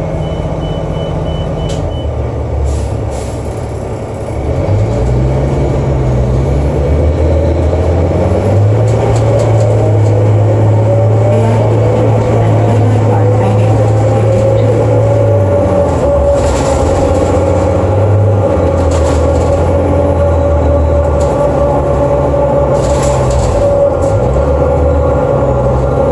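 A bus engine hums low and rises in pitch as the bus speeds up.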